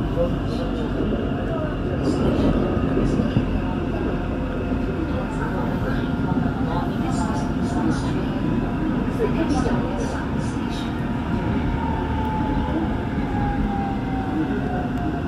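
An electric commuter train rumbles along the tracks, heard from inside a carriage.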